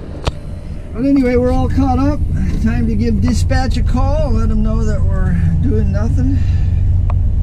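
A middle-aged man talks close by.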